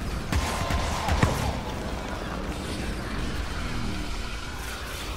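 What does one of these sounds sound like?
Magic blasts whoosh and crackle in quick bursts.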